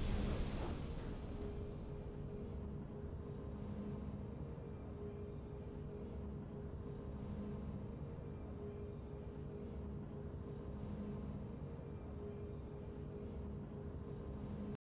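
Triumphant game music plays steadily.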